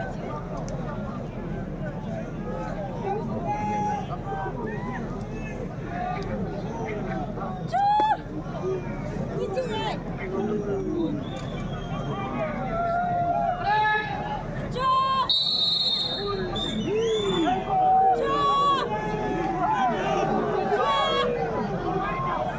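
A large crowd of spectators chatters and shouts.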